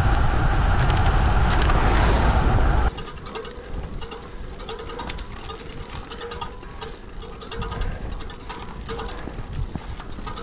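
Bicycle tyres roll over asphalt.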